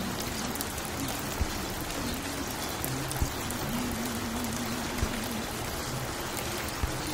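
A vinyl record crackles and hisses as it spins on a turntable.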